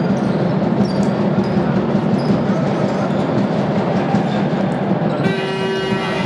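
A crowd of spectators murmurs in the stands.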